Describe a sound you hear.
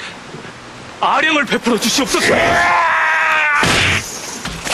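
A man shouts loudly in anguish.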